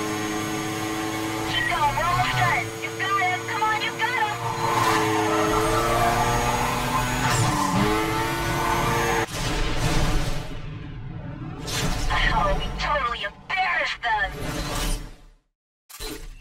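A sports car engine roars and revs at high speed.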